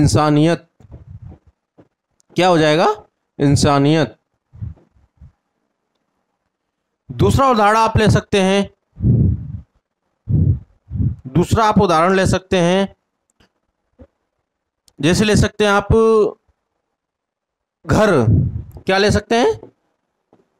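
A man speaks clearly and with animation into a close microphone, in bursts with pauses.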